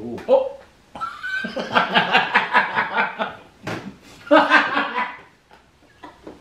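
A man laughs loudly.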